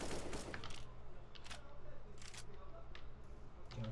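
A rifle magazine clicks out and snaps back in during a reload.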